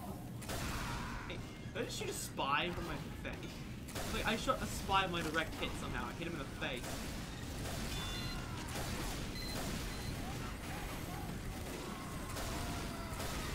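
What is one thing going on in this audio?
Rockets launch with a whoosh and explode with dull booms.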